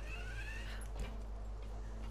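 Boots land with a thud on a metal grating.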